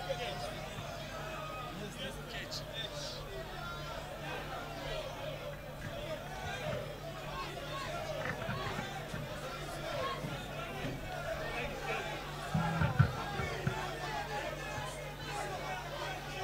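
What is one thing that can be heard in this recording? A band plays music through loudspeakers.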